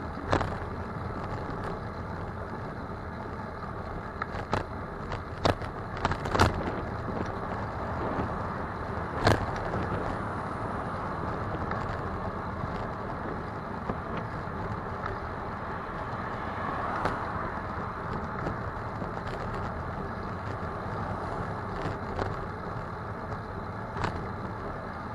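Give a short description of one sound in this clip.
A car's interior rattles and knocks now and then over bumps.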